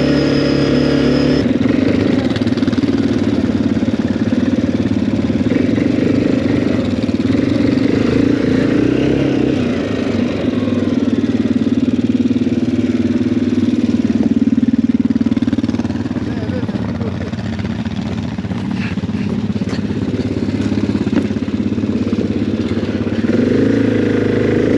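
A quad bike engine idles and revs close by.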